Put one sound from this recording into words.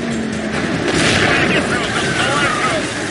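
A car crashes hard into metal.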